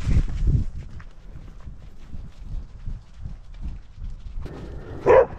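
A dog's paws thud and crunch quickly through snow.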